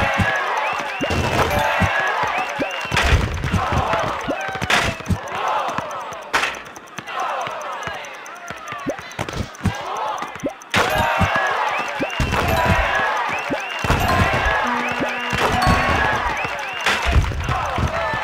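Fireworks pop and crackle overhead.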